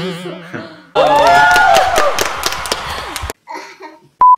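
Two young women clap their hands.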